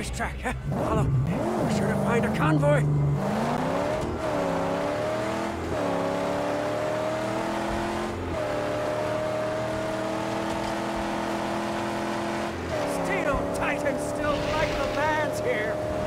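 A car engine roars and revs as the car speeds over rough ground.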